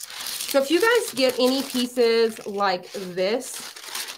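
Thin paper rustles and crinkles as it is slid around.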